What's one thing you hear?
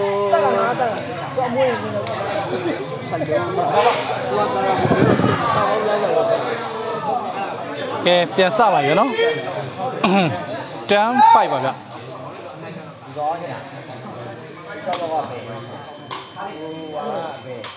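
A crowd of men chatters and shouts around a large, echoing covered court.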